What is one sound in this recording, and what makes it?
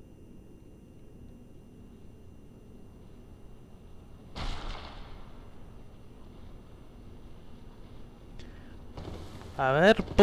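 Heavy footsteps thud on a stone floor.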